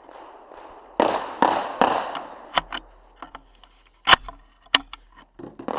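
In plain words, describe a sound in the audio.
A shotgun fires loud, sharp blasts that echo outdoors.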